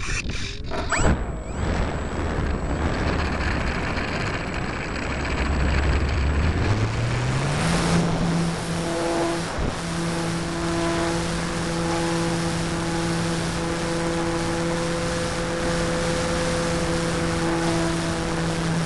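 Wind rushes past a small model aircraft in flight.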